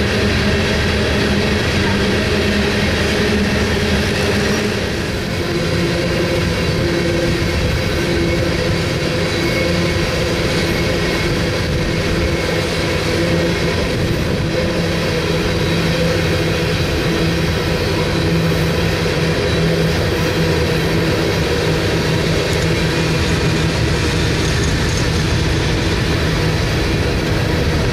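A long freight train rolls past close by.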